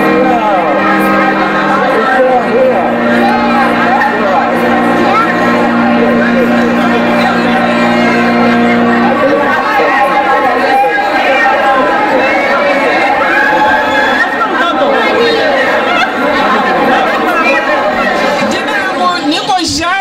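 A crowd of people chatter and greet each other warmly.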